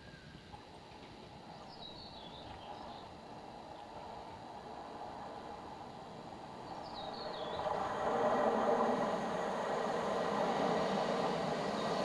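A diesel train approaches and rumbles louder as it nears.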